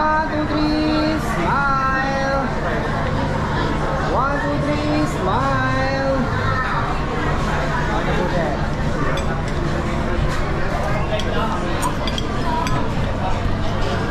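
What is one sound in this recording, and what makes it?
Many people chatter in a busy, echoing room.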